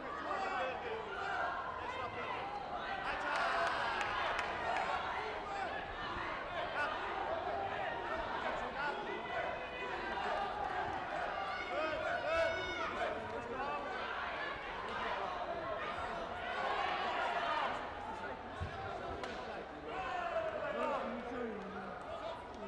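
People shout and cheer in a large echoing hall.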